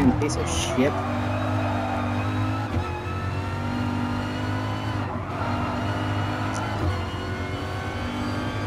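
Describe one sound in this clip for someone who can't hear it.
A racing car engine roars steadily, its pitch dropping and climbing with each gear change.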